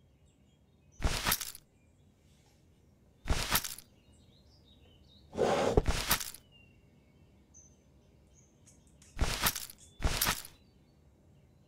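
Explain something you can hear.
A shimmering magical whoosh sounds several times.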